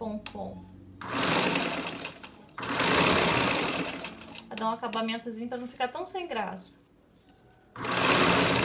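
A sewing machine runs in short bursts.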